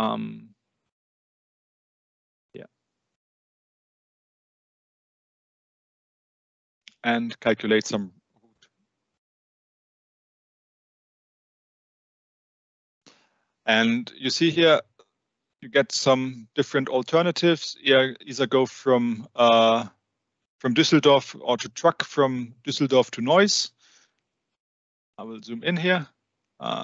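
An older man speaks calmly through an online call, in short bursts with pauses.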